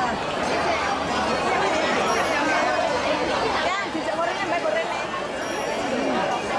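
A crowd of elderly men and women chatters all around.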